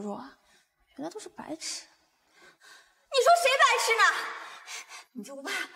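A young woman answers with a pleading, rising voice.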